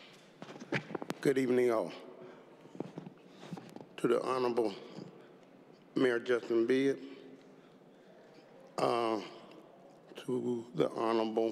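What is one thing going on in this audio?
A man speaks into a microphone in a large hall, pausing between phrases.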